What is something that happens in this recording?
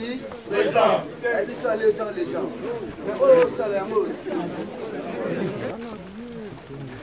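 A crowd of men talk and shout loudly outdoors, close by.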